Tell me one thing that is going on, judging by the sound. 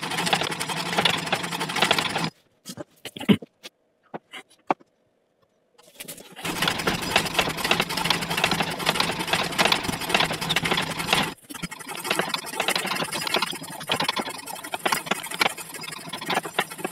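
A small machine whirs and rattles loudly, with a brief pause.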